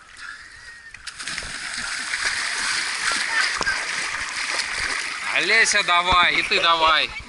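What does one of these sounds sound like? Water churns and splashes around swimmers.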